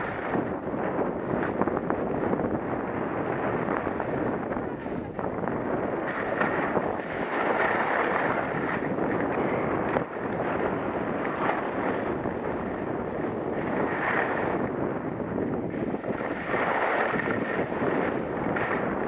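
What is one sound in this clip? Wind rushes loudly past a moving skier.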